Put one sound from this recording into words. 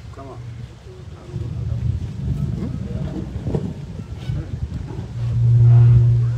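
A man speaks loudly through a microphone and loudspeakers outdoors.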